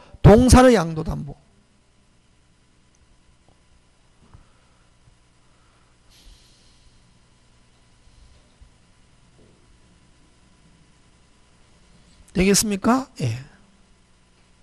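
A middle-aged man speaks into a microphone in short bursts, like a lecturer.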